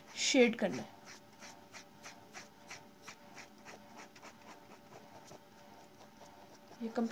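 A pen scratches quickly back and forth on paper.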